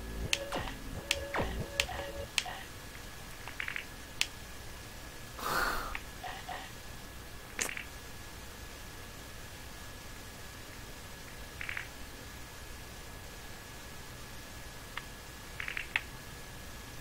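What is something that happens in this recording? Short electronic game blips and chimes sound now and then.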